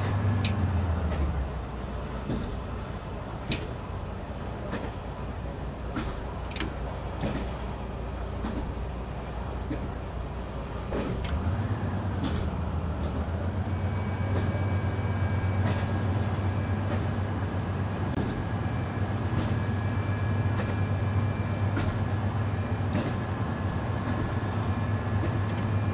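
A train engine hums steadily, growing louder as it speeds up.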